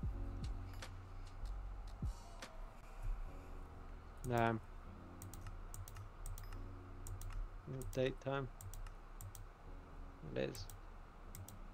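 Soft interface clicks sound as menu tabs are switched.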